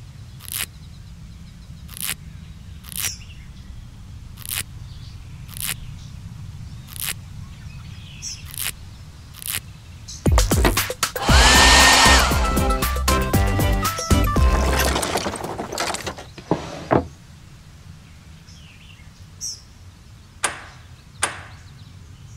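Short pops sound as stickers are placed.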